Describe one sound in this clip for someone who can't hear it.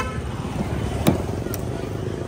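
A car door handle clicks.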